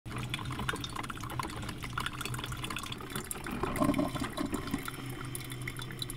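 A coffee maker gurgles and drips as it brews.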